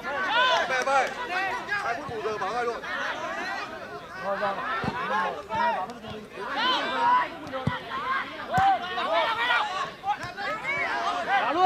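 A football is kicked on grass.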